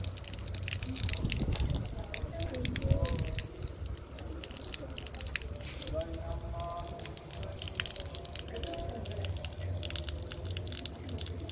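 Rainwater trickles and splashes from a roof gutter.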